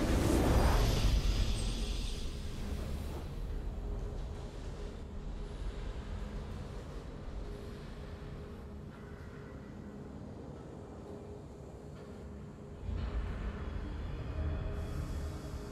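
A triumphant victory fanfare plays.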